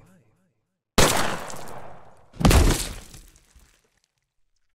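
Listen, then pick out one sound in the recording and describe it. A gun fires two loud shots that echo and fade.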